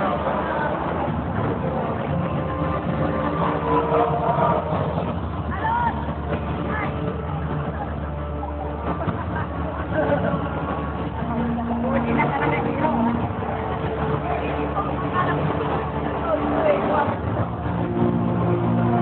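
Music plays loudly through loudspeakers in a large echoing hall.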